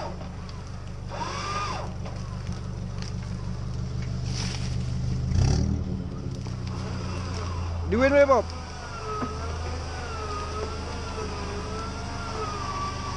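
An engine rumbles steadily at low revs.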